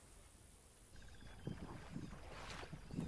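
Elephants splash and slosh in shallow water.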